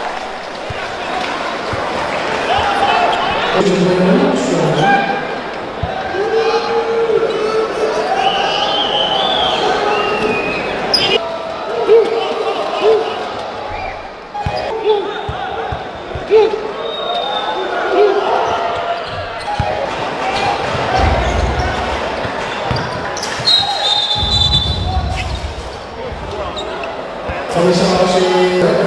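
A crowd murmurs and cheers in a large echoing arena.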